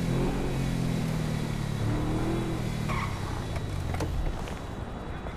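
A car engine idles with a low hum.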